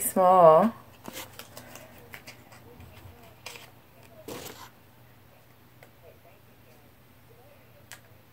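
Small items rustle and click in a woman's hands.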